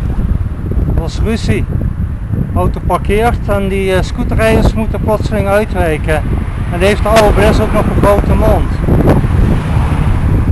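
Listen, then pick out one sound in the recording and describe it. A middle-aged man speaks close to the microphone.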